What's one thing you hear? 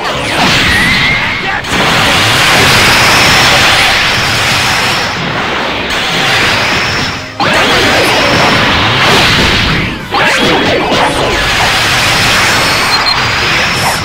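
Energy blasts roar and crackle in bursts.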